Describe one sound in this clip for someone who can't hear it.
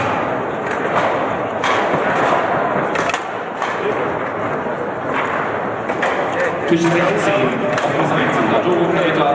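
Foosball rods clack and the ball knocks sharply against the table.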